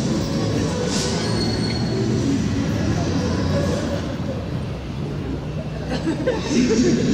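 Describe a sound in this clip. Footsteps of many people walk on pavement.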